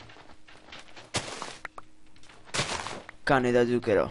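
Plant stalks snap and break with a soft crunch.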